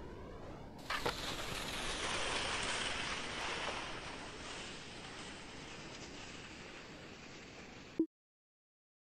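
A crowd cheers loudly after a ski jumper lands.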